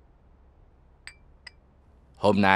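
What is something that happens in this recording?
A teacup clinks on a saucer.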